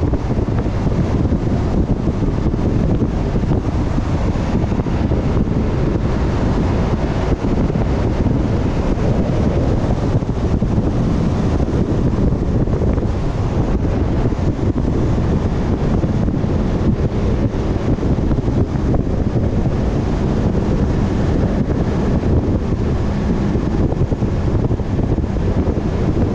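Wind roars loudly and steadily past a moving vehicle.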